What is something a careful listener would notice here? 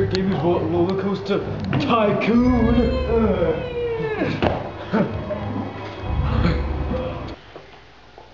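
A young man laughs and shouts nearby.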